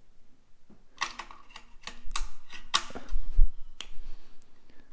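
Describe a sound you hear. Batteries click and clatter as hands push them into a charger's slots.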